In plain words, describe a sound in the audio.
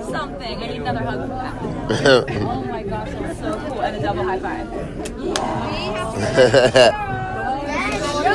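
A crowd of people chatter and shout excitedly close by.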